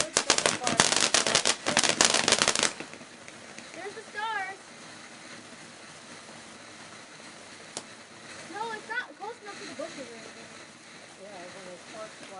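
A firework fountain hisses steadily as it sprays sparks.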